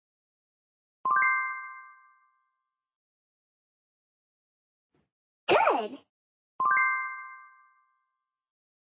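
A bright electronic chime rings out and slowly fades.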